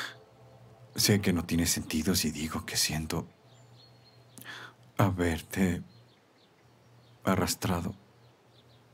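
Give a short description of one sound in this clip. A man speaks quietly and earnestly, close by.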